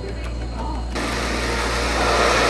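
A countertop blender whirs.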